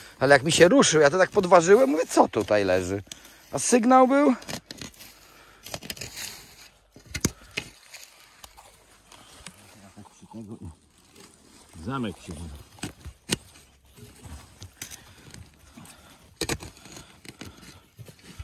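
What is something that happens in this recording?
A hand scrapes and rustles in dry soil.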